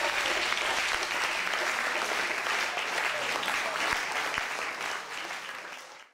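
An electric piano plays chords.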